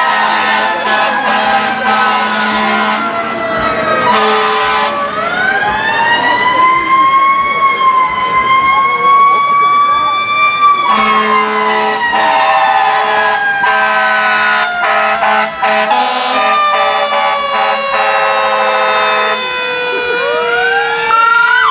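Sirens wail loudly, rising and falling as emergency vehicles approach.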